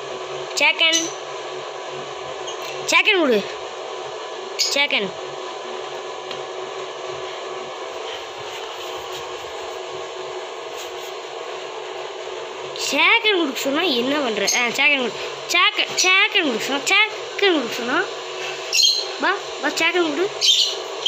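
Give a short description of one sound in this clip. A puppy whines and yelps playfully up close.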